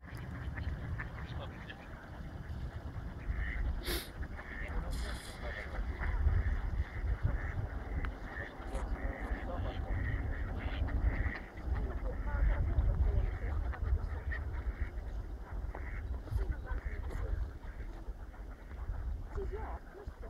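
Ducks quack on the water.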